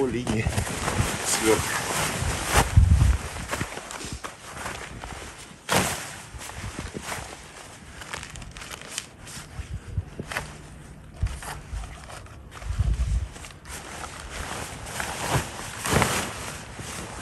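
Nylon tent fabric rustles and crinkles as a man handles it.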